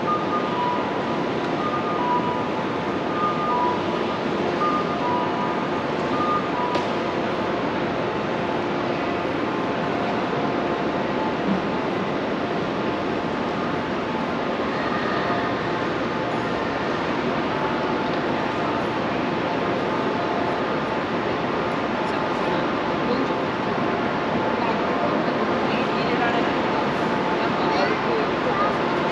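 Footsteps patter steadily on a paved walkway.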